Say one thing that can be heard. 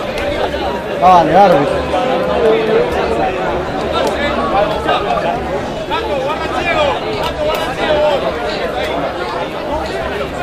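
A man, the referee, speaks loudly and firmly to the players.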